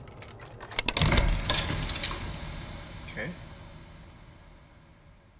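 A grandfather clock strikes with a deep ring that slowly fades.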